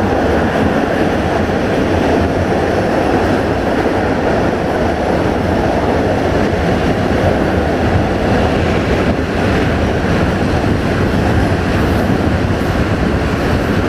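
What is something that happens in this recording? Wind rushes loudly past an open train window.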